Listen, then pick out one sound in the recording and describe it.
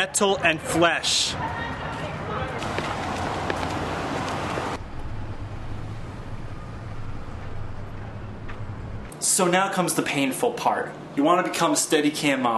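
A young man speaks energetically and close to a microphone.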